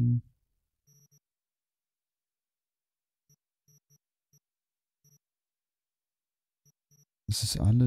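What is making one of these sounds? Soft interface clicks tick as menu items are selected.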